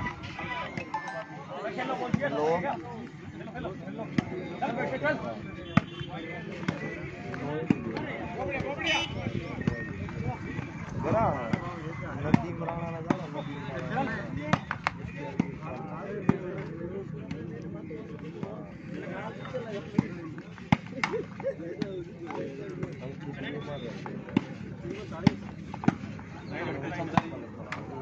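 Hands strike a volleyball with sharp slaps outdoors.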